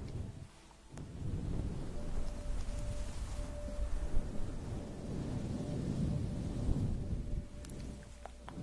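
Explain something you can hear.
Fingers rub and scratch a fluffy microphone cover up close, with a loud rustling.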